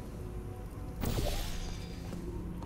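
A portal gun fires with a sharp electric zap.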